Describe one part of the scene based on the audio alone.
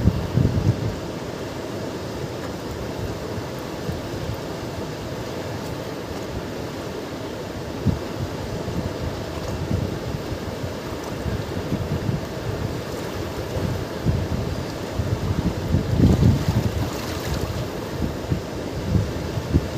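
A river rushes loudly over rocks close by.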